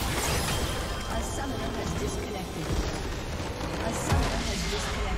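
Game spells crash and explode in a fight.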